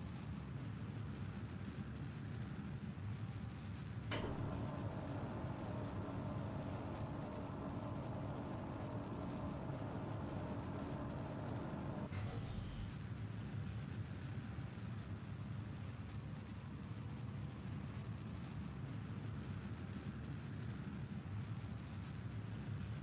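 A rocket engine roars steadily.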